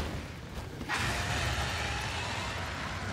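A huge beast roars and growls.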